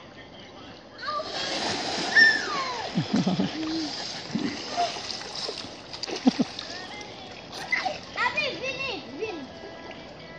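Water splashes as children play.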